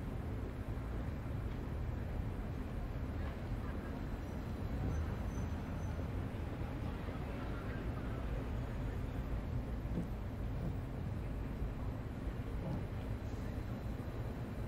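A stationary train hums with a low, steady rumble.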